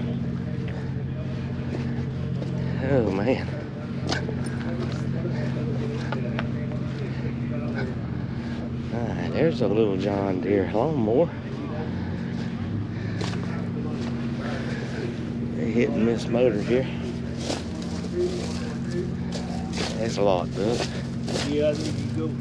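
Old engines run with a steady low chugging hum.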